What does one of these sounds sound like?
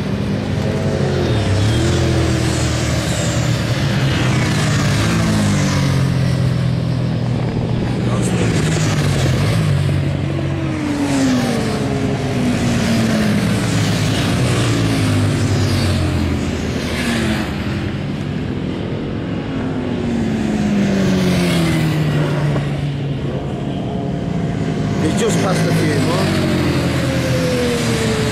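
Several motorcycle engines roar and whine as they race past, rising and falling in pitch.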